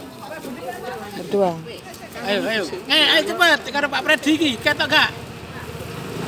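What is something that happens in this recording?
Elderly men talk and laugh close by, outdoors.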